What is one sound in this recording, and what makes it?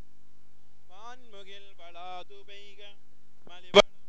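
A man chants in a melodic voice.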